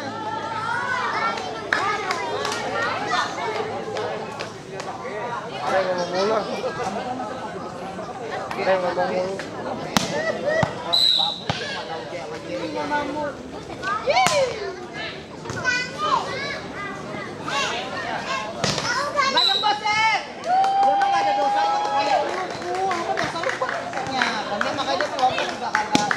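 A crowd of young men shout and call out outdoors.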